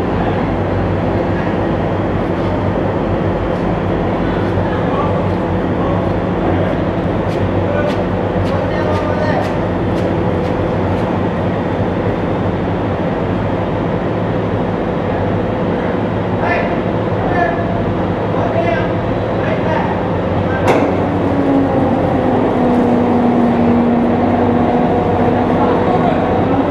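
A tracked amphibious assault vehicle's diesel engine rumbles in a large echoing hall.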